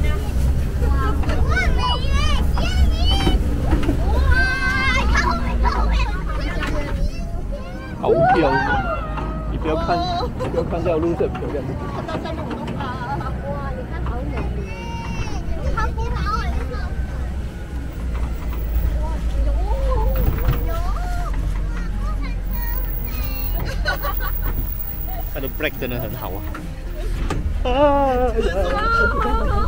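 A woman talks excitedly close by.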